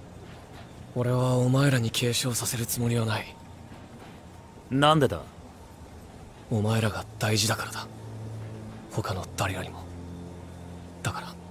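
A young man speaks calmly and softly.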